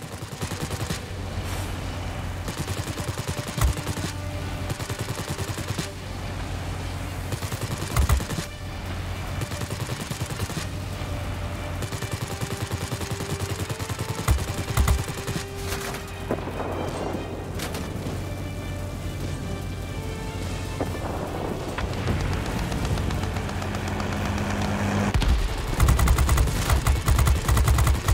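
A propeller engine drones steadily.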